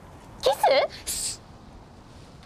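A young girl makes a hushing sound.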